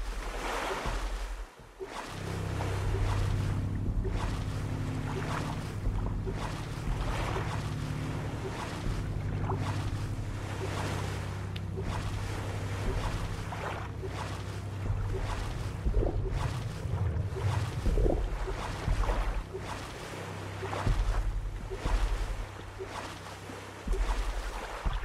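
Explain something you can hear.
Gentle waves lap around a small boat.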